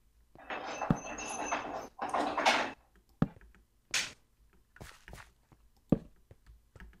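Footsteps scrape over stone.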